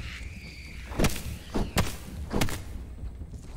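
A weapon strikes with sharp thuds.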